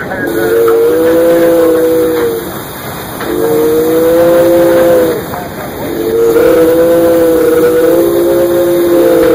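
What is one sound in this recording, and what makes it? A train rumbles along the rails.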